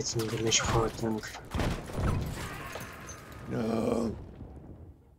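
Gunfire and explosions crack and boom up close.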